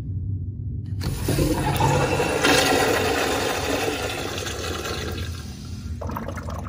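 A urinal flushes with a loud rush of water.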